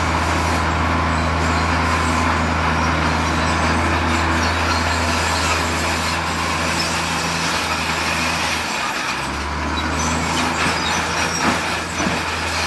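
A heavy truck engine idles with a low steady hum.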